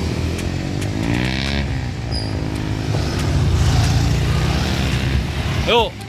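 A motorcycle passes close by with a rising and falling engine whine.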